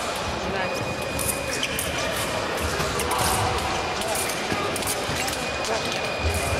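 Fencing blades clash and scrape.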